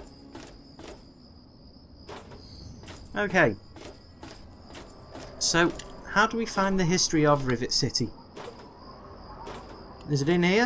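Footsteps clank steadily on a metal walkway.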